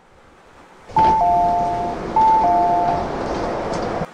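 A two-tone door chime sounds twice.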